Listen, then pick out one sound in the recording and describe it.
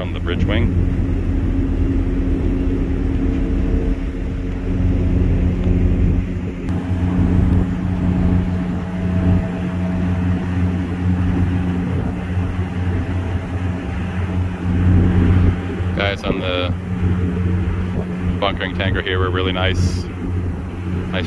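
A ship's engine hums with a steady low drone.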